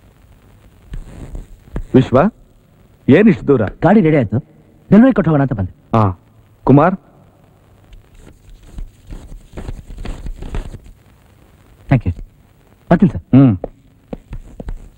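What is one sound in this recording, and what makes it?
A middle-aged man speaks calmly and slowly up close.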